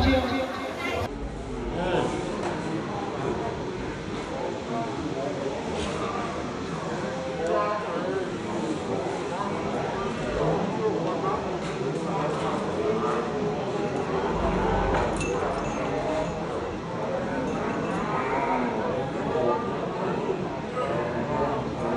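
A crowd of men and women murmurs and chats nearby.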